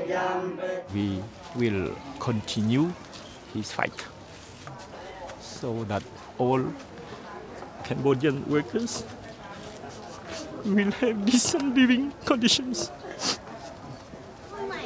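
A middle-aged man speaks with emotion close by, pausing often.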